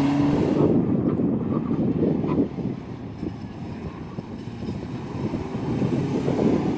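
A car engine revs hard as the car speeds past close by.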